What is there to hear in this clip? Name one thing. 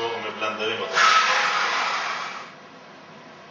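A blender whirs loudly for a moment.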